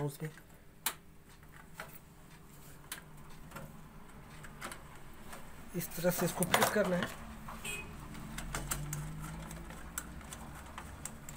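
Plastic parts click and rattle as hands handle them.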